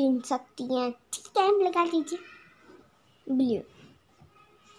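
A young girl speaks close by with animation.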